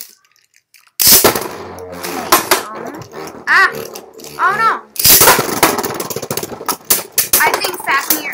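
A spinning top whirs and scrapes across a plastic dish.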